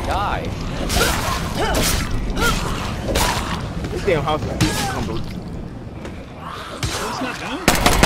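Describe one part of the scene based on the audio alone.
Heavy blows thud in quick succession.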